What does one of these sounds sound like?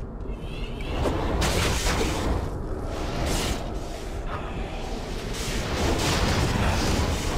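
Fiery spells burst and roar in bursts.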